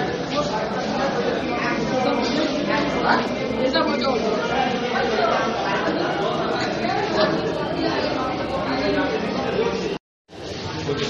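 Several men talk loudly and agitatedly close by.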